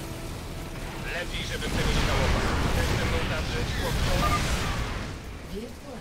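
Battle explosions and gunfire rumble from a game.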